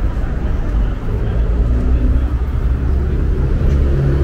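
Footsteps scuff along a concrete pavement outdoors.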